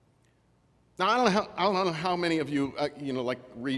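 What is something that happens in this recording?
A middle-aged man speaks with animation through a microphone in an echoing hall.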